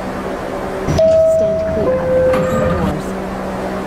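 A two-tone door chime sounds.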